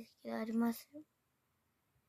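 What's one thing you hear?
A young girl speaks briefly and softly close to a microphone.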